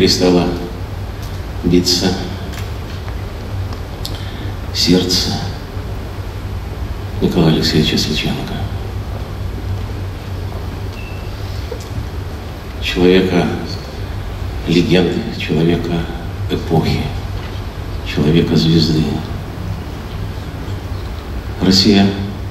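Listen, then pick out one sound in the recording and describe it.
An elderly man speaks slowly and solemnly through a microphone in a large hall, with long pauses.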